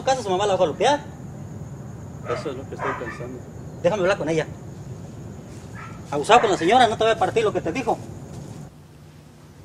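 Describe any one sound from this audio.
A man speaks with animation outdoors.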